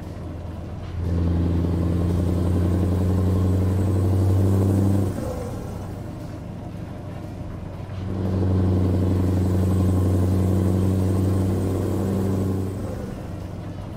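A truck engine roars louder for a few seconds, then settles.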